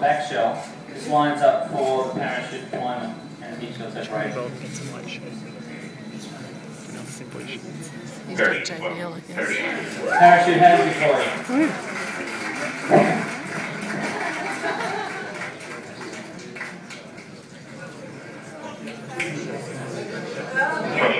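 An audience murmurs nearby.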